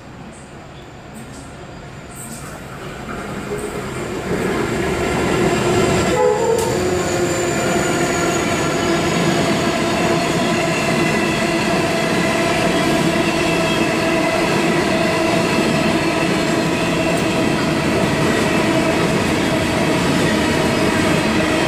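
A freight train approaches and rumbles loudly past close by.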